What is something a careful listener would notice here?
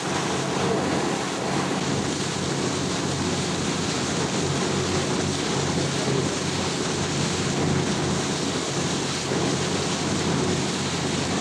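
Water rushes and splashes along a boat's hull.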